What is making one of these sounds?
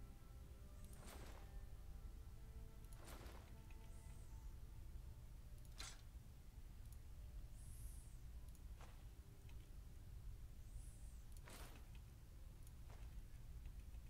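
Short game menu clicks and chimes sound as items are picked.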